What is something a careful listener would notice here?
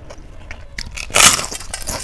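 A woman bites into crisp food with a loud crunch.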